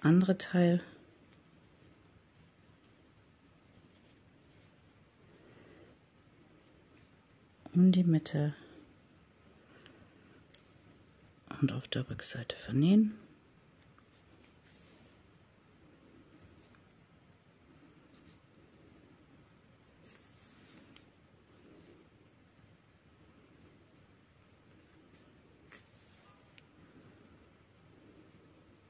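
Yarn is drawn through knitted fabric with a needle, rustling softly.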